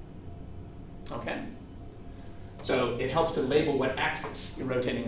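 A man speaks in a lecturing tone, close by.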